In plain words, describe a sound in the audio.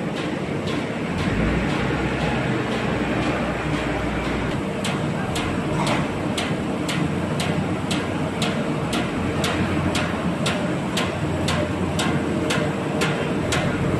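A paper sheeter's cutter chops through paper in a fast, even rhythm.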